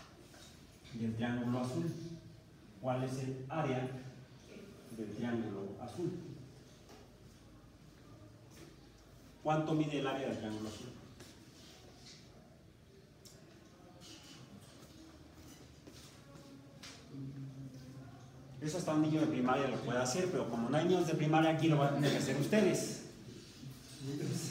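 A man speaks in a lively way.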